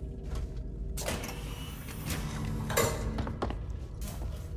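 A heavy metal door hisses and slides open.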